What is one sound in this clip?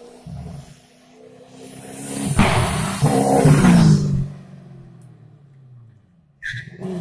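A racing car engine roars as the car approaches fast and passes close by.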